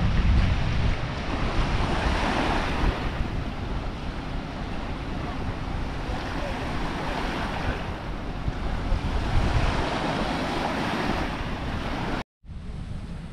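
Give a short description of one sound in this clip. Small waves wash gently onto a sandy shore.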